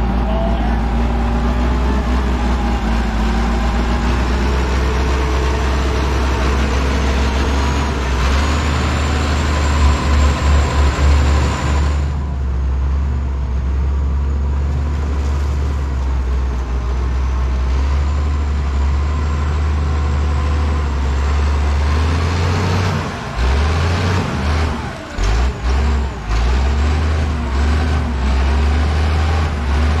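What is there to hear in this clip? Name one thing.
A diesel loader engine rumbles and revs throughout, outdoors.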